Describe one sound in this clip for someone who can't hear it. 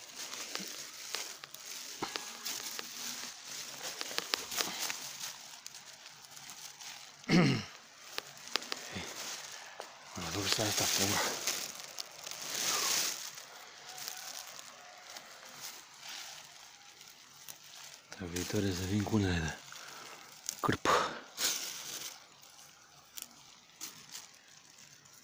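Dry grass rustles and crackles underfoot.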